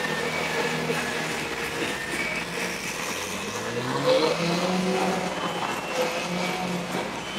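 A sports car engine rumbles and revs as the car drives slowly past.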